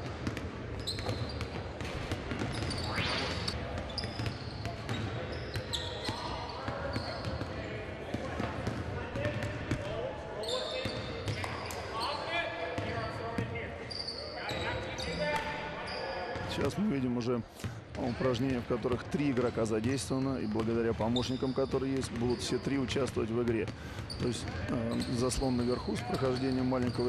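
Basketballs bounce on a wooden floor in a large echoing hall.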